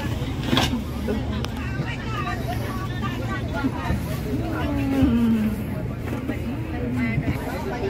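A woman speaks softly to a small child close by.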